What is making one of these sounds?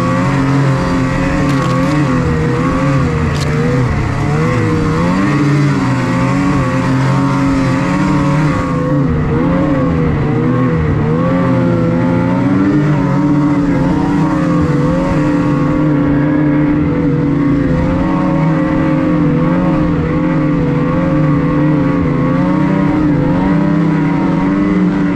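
A snowmobile engine drones steadily close by, its pitch wavering up and down.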